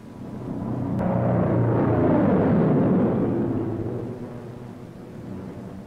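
A propeller plane roars past, swelling and then fading.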